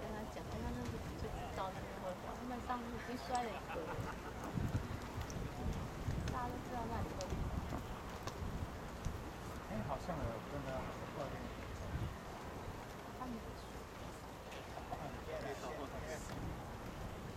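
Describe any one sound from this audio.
Several men talk with each other nearby, outdoors.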